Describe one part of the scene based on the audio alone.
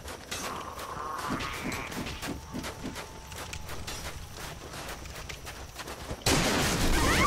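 Footsteps crunch steadily on stone.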